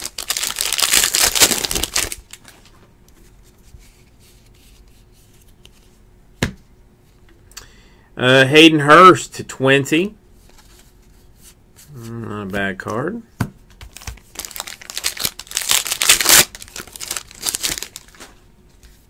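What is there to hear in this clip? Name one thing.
A foil card pack wrapper crinkles as it is torn open.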